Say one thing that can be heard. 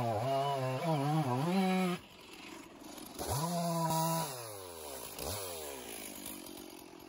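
A two-stroke chainsaw revs in bursts, then winds back down toward idle.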